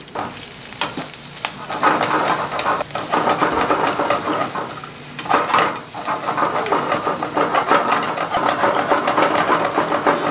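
A wooden spatula scrapes and taps against a pan.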